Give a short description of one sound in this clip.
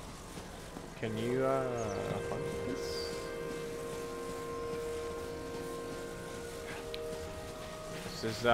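An electronic hum drones as a glowing crate floats along.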